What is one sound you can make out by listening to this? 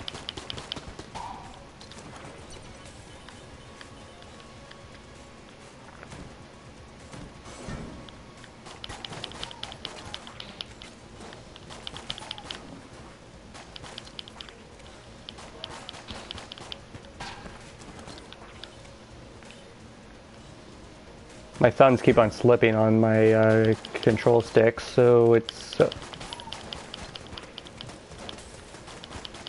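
Small guns fire in rapid bursts of sharp cracks.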